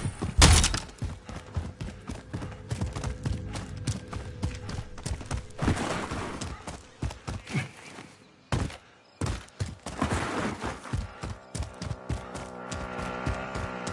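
Quick footsteps thud on dirt and grass.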